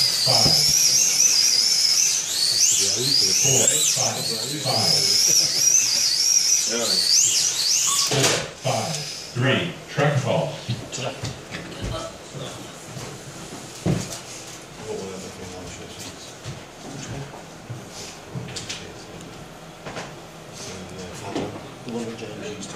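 Men talk in the background of a crowded room.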